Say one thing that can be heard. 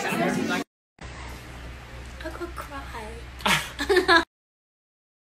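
Several young women talk and laugh together.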